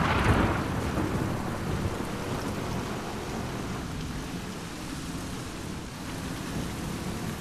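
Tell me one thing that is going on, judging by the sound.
Water splashes and churns against a moving boat.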